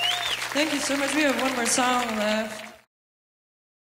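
A fiddle plays a melody.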